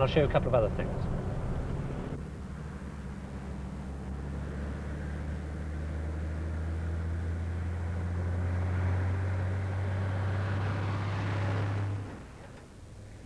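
A car engine hums steadily and fades as the car drives away.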